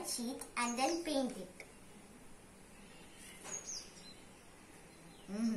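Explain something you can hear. A young girl speaks calmly close by.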